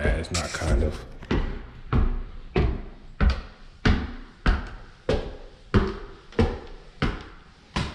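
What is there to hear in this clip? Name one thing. Footsteps thud steadily up wooden stairs and along a wooden floor.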